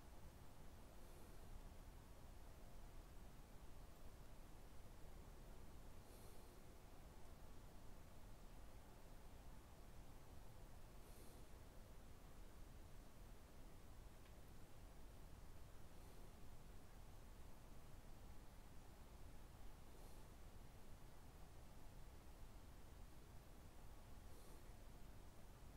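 A man breathes slowly and softly, close by.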